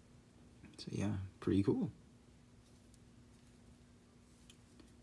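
Fingers handle a small plastic figure with faint clicks.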